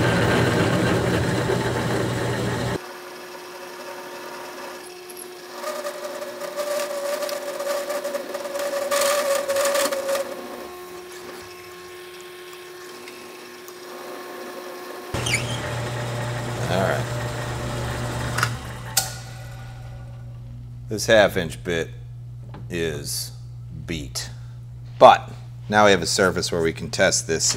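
A drill press bores into metal with a steady whirring hum.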